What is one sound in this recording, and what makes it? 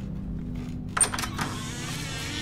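A door latch clicks as a door is opened.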